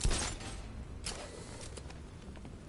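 A grappling hook fires with a sharp whoosh.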